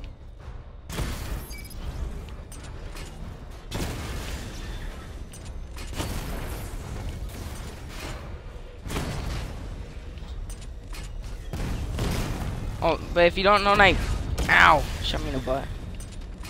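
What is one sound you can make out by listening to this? Guns fire in short bursts.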